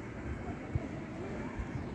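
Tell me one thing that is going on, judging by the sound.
A young woman laughs softly nearby.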